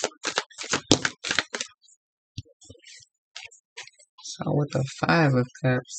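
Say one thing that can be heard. A card slides and rustles as it is picked up.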